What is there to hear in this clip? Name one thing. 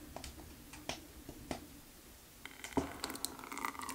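A lid clinks on a metal pot.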